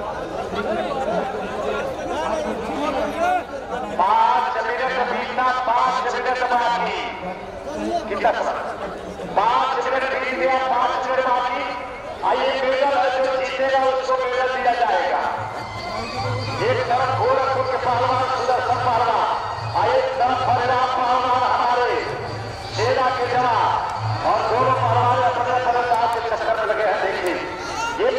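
A man commentates loudly and animatedly through a loudspeaker, echoing outdoors.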